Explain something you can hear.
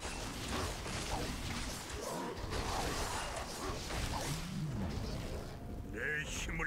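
Weapons clash and magic crackles in a busy fantasy battle.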